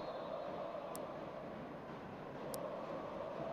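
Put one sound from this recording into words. A volleyball bounces on a hard floor in an echoing hall.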